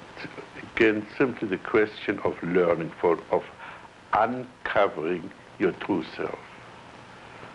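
An elderly man speaks slowly and calmly, close by, in an old, hissy recording.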